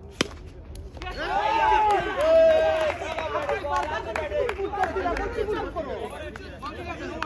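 Men shout and call out excitedly outdoors.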